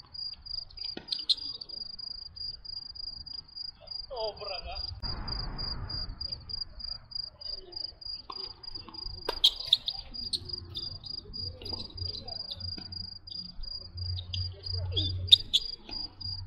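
A tennis ball is struck sharply with a racket, several times.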